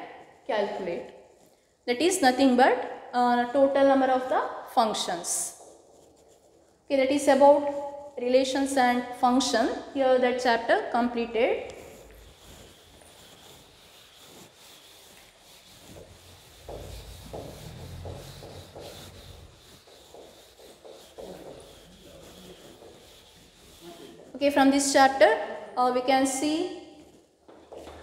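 A woman speaks clearly and calmly, as if teaching.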